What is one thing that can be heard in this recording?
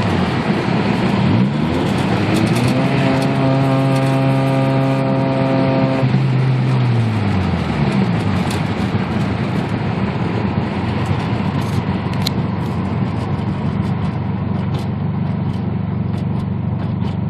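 Wind and road noise roar steadily inside a moving car.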